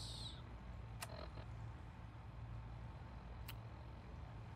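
Short electronic blips sound as a game menu changes.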